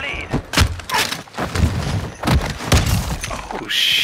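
A knife stabs into a body with wet thuds.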